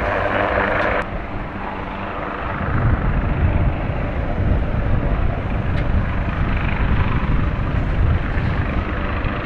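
A boat's engine rumbles on the water.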